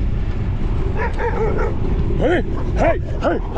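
Dogs bark near the road.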